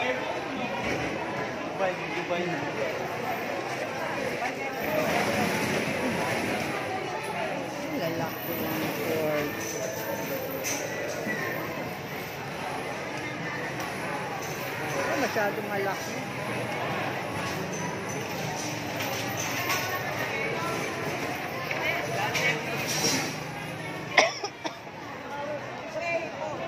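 A busy crowd of men and women chatters all around, close by and further off.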